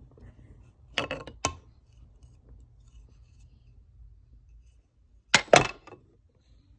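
Wooden toy track pieces knock and clack together.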